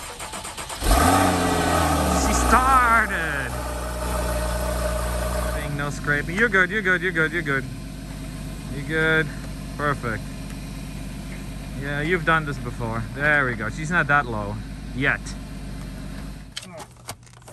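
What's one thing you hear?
A car engine starts with a rev and then idles steadily.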